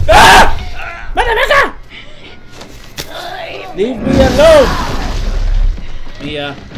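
A woman screams harshly.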